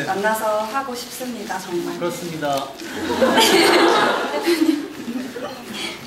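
A young man speaks through a microphone in a large echoing hall.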